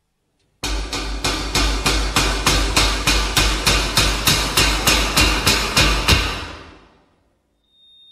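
Dance music with a steady thumping beat plays loudly and then fades out.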